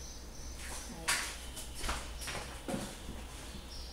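Footsteps hurry across a tiled floor.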